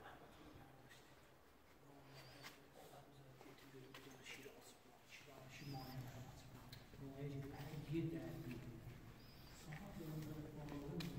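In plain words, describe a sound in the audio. A man talks calmly nearby in a large echoing hall.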